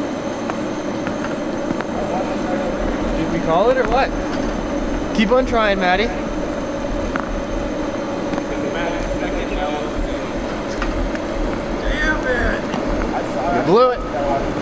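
A suitcase's wheels rumble over wet pavement.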